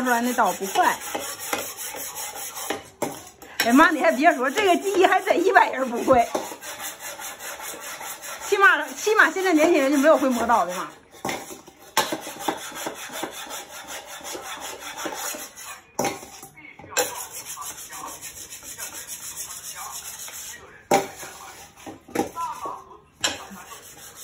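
A blade scrapes back and forth against a whetstone.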